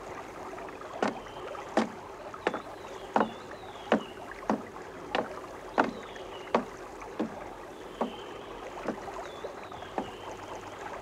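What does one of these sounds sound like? Footsteps clomp slowly on wooden planks.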